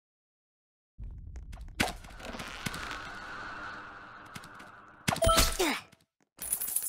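Video game sound effects chime and whoosh.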